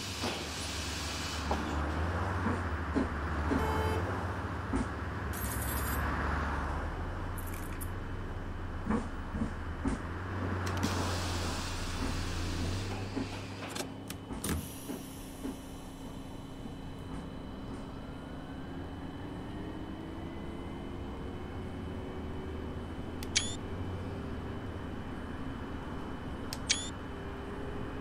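A bus engine idles and then rises in pitch as the bus pulls away.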